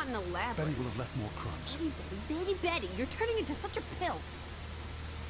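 A young woman speaks with a dry, mocking tone, close by.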